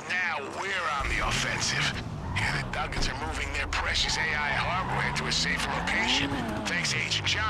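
A car engine revs and roars as the car pulls away.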